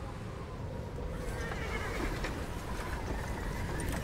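Horses pull creaking wagons through snow.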